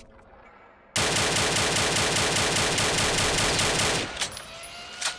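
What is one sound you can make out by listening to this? A rifle fires in a rapid burst of shots.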